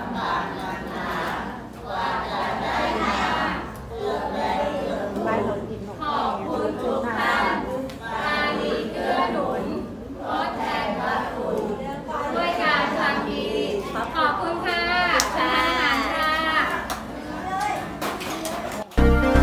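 A crowd of men and children chants a prayer together in unison.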